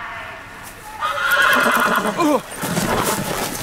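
A horse whinnies and snorts.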